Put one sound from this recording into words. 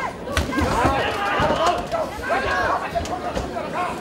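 Fists thud against a fighter's body.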